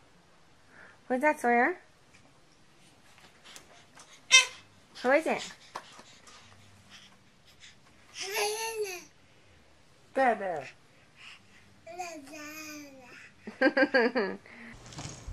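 A baby giggles and squeals with delight.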